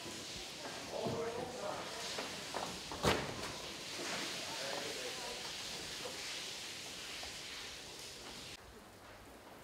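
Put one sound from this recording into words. Water sprays hard from a hose onto metal.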